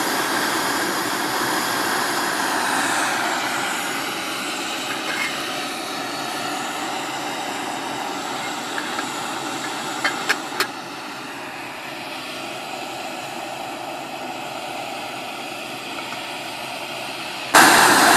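A gas stove burner hisses steadily.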